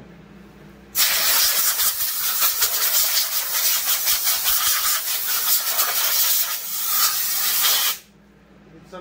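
A power tool whirs loudly, then stops.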